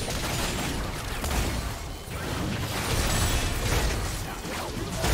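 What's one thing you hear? Video game magic beam blasts crackle and whoosh during a fight.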